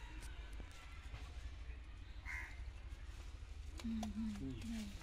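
Hands rustle and tug a wet fishing net.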